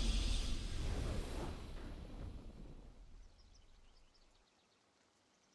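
A game's victory fanfare booms and slowly fades away.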